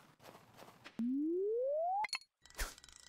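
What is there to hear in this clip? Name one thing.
A rising electronic tone plays as a fishing cast charges up.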